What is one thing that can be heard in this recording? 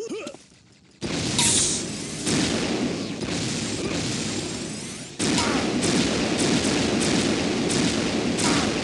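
An energy weapon fires repeatedly with sharp zapping blasts.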